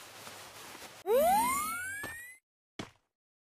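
A parachute opens with a whoosh.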